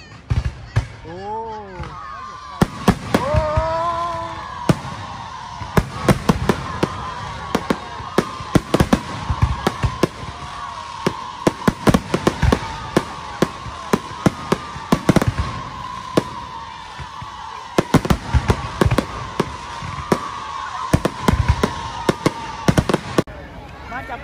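Fireworks rockets whistle as they shoot upward.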